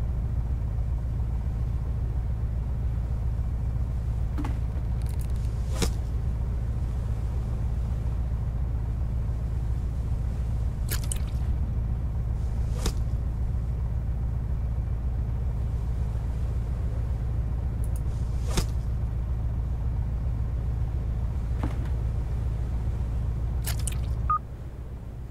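A boat engine hums low and steady, then cuts out.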